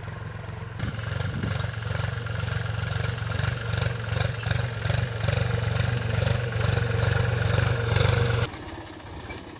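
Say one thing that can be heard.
A tractor engine rumbles steadily nearby.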